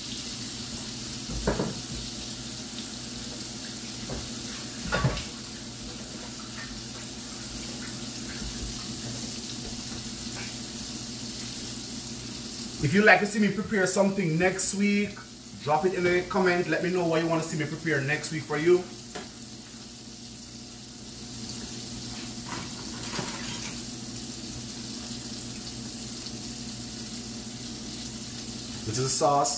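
Fish sizzles in hot oil in a frying pan.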